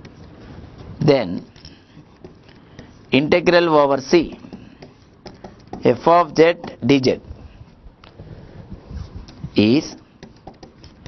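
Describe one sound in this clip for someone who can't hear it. A man speaks calmly in short phrases, close by.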